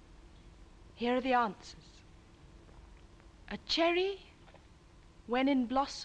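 A young woman speaks expressively, close by, in short phrases.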